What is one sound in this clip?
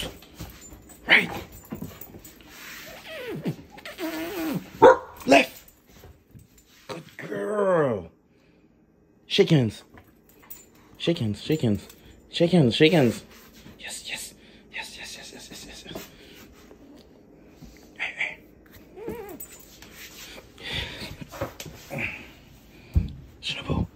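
A dog whines and yelps excitedly.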